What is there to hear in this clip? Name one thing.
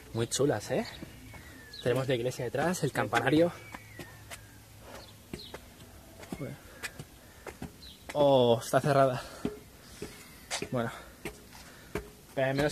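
A young man speaks with animation close to the microphone outdoors.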